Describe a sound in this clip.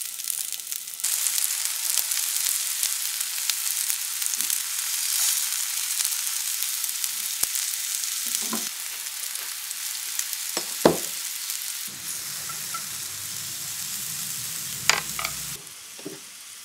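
Food sizzles and crackles in hot oil in a pan.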